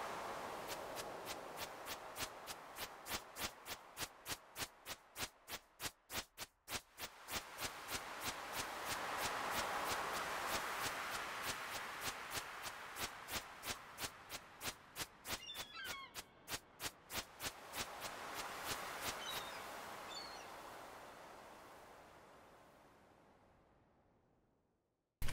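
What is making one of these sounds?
Waves wash gently onto a shore, swelling and fading.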